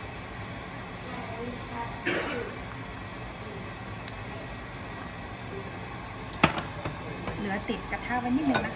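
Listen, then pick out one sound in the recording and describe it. A spatula scrapes and clinks against a metal pan.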